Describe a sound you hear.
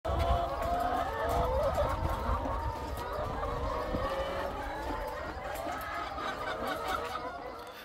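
Many hens cluck and squawk close by.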